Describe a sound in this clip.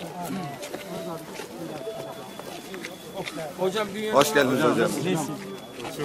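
A crowd of men talk and shout over each other close by.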